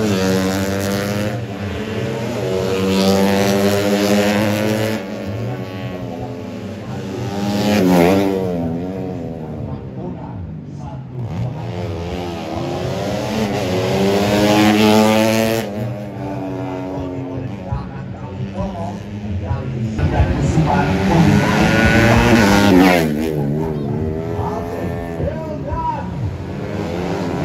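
Racing motorcycle engines scream and rev as the bikes speed past, rising and falling in pitch.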